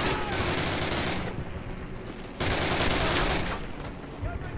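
Rapid gunfire blasts out in loud bursts.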